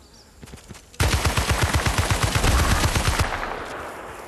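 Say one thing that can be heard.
A machine gun fires a long, rapid burst of loud shots.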